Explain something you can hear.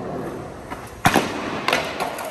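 A skateboard slams down onto a stair rail with a loud crack.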